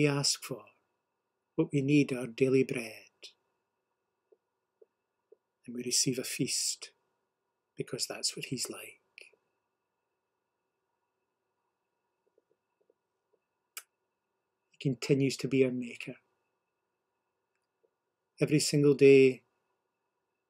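A middle-aged man speaks calmly in short bursts, heard through a microphone.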